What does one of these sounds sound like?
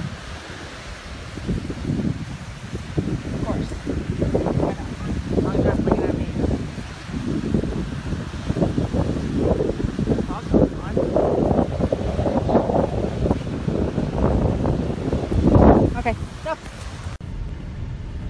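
Strong wind gusts and buffets the microphone outdoors.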